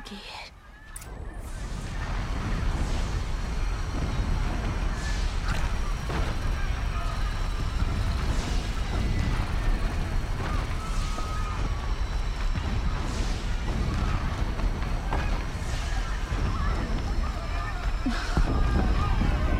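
Fires roar and crackle all around.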